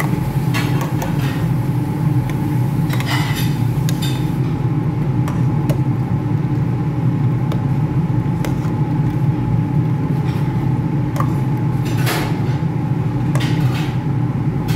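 A metal ladle scrapes and clinks against a pot while stirring.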